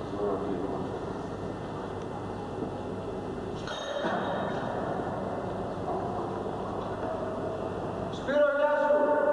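A man talks nearby in a large echoing hall.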